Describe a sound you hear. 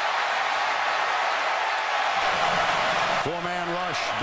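A huge stadium crowd roars and cheers.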